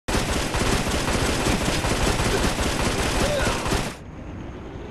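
Rapid gunshots fire in a burst.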